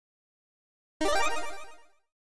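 A bright game chime sounds as a reward pops up.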